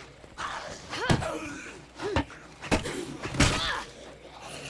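Heavy blows thud against a body several times.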